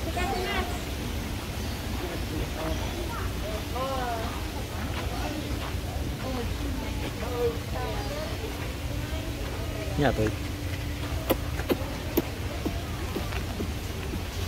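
Young women and men chat casually nearby outdoors.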